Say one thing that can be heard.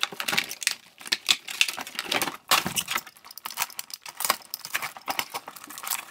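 Plastic packaging rustles and crinkles under hands.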